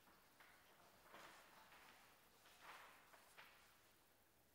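Sheets of paper rustle as pages are turned.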